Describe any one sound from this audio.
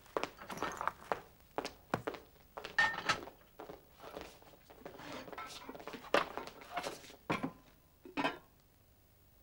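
An elderly woman speaks calmly.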